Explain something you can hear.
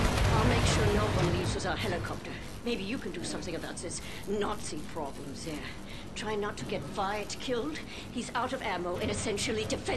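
A young woman speaks urgently and close.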